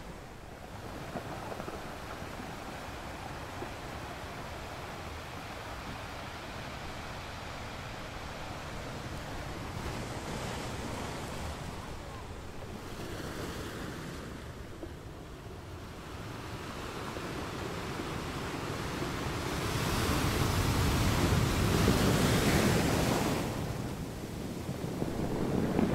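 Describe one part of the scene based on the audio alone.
Ocean waves crash and surge against rocks close by, rising and falling in loud rushing swells.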